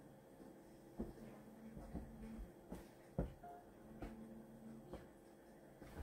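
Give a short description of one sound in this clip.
A hand pats softly on a blanket.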